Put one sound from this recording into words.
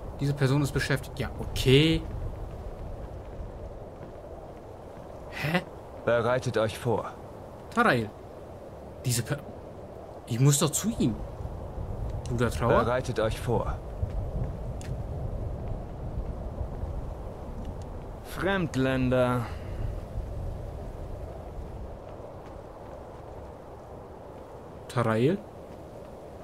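A man speaks casually into a close microphone, in short bursts.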